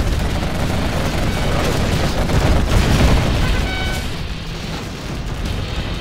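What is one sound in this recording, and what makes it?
Tank guns fire in quick bursts.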